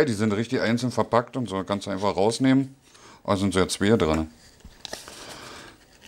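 Paper rustles as a man handles a card.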